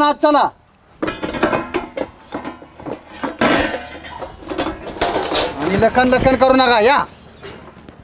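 Metal dishes clatter and clank.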